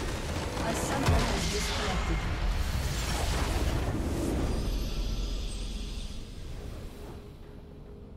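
A large crystal structure shatters with a loud booming explosion.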